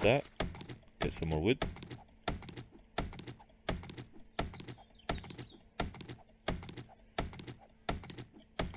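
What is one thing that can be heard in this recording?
A stone axe chops into a tree trunk with repeated dull thuds.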